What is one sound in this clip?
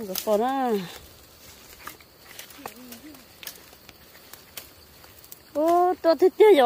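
Footsteps crunch on dry leaves and twigs outdoors.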